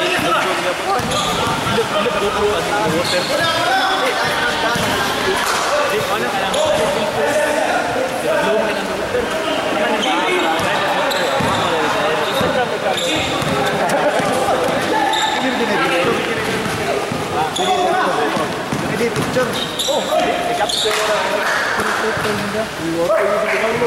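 Young men call out to each other across the court.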